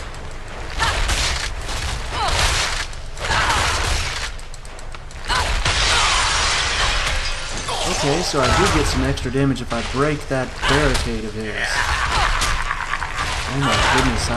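Punches and blasts crash and whoosh in quick succession.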